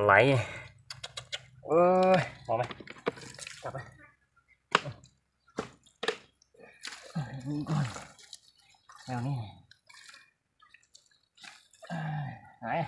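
Wet mud squelches as hands dig into it.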